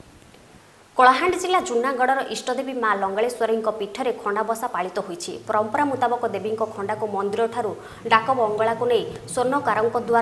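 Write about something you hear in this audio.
A woman reads out the news steadily into a microphone.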